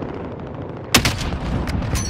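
A rifle fires a single loud shot.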